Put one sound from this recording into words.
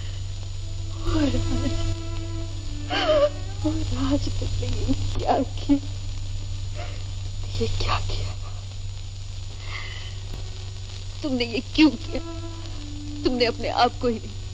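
A young woman speaks in an anguished, tearful voice close by.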